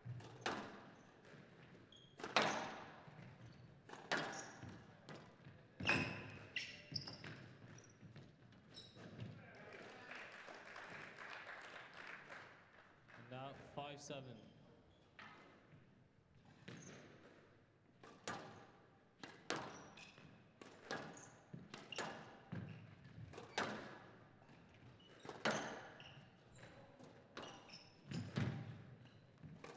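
Rubber shoes squeak on a wooden court floor.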